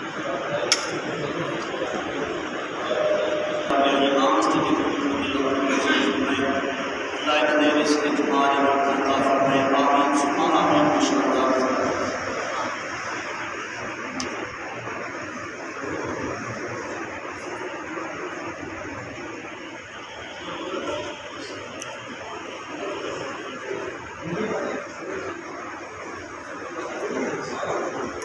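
Men murmur and talk quietly in a crowded room.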